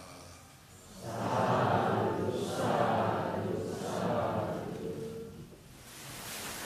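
An elderly man chants slowly into a microphone.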